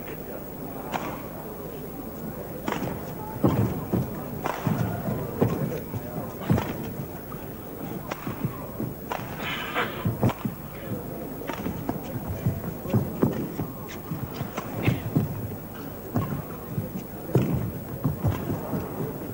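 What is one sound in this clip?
A shuttlecock is struck sharply back and forth by rackets.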